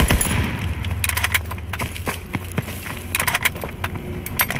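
A gun's magazine is pulled out and clicked back in during a reload.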